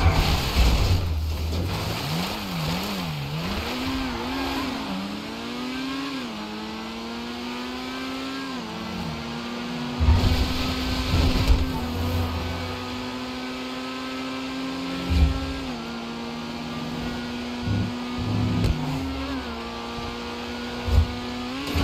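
A sports car engine revs and roars, rising and falling as it shifts gears.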